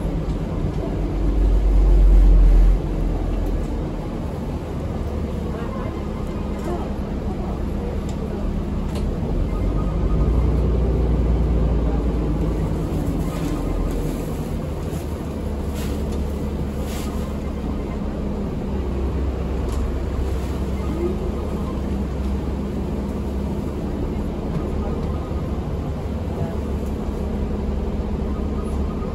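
A bus engine rumbles steadily in a moving bus.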